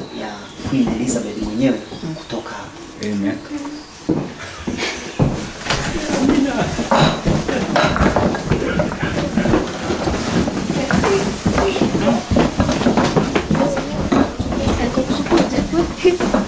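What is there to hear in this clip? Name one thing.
Several men talk over one another close by.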